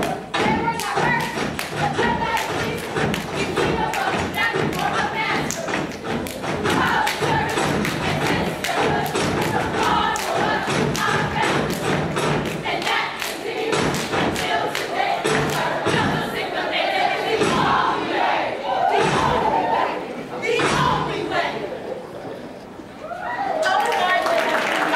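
Hands clap in rhythm.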